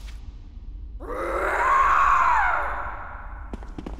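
A creature lets out a loud, wavering shriek.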